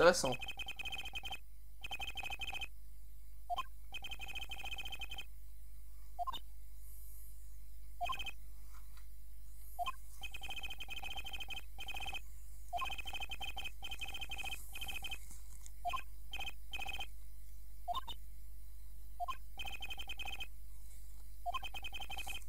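Rapid high electronic beeps chirp in short bursts.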